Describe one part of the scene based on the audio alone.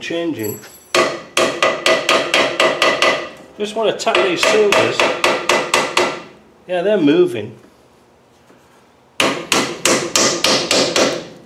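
A hammer strikes metal in quick, ringing blows.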